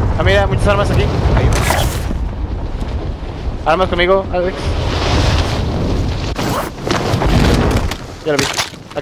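Wind rushes loudly during a fast fall through the air.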